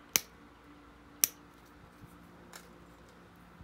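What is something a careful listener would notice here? Sharp stone flakes snap off with crisp clicks.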